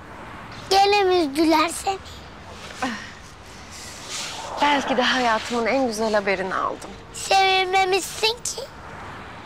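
A young girl speaks plaintively up close.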